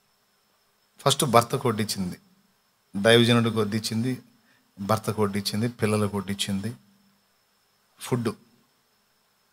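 A man speaks with animation into a microphone, in short bursts with pauses.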